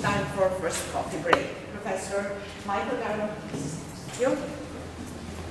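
A woman speaks calmly in a room with a slight echo.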